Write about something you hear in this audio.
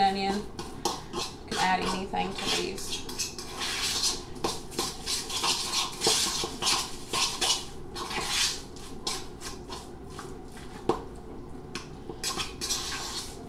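A spoon scrapes and clinks in a bowl.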